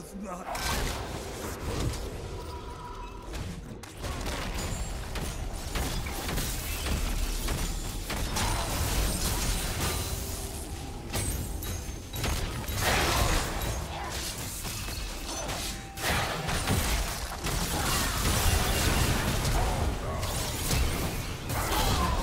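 Video game spells whoosh and clash in a fight.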